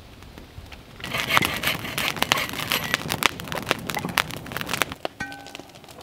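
A fire roars and crackles loudly outdoors.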